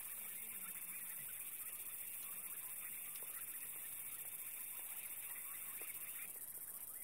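A rhino laps water quietly at the water's edge.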